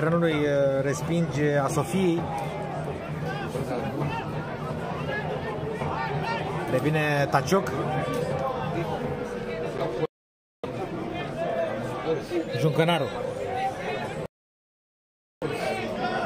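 A large crowd chants and sings loudly outdoors.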